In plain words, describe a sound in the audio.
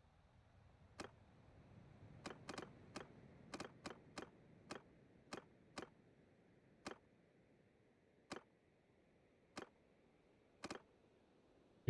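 Soft interface clicks tick in irregular succession.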